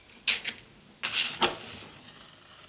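A match is struck and flares up close by.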